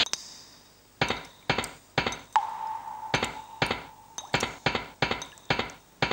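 Footsteps thud rapidly on a metal floor.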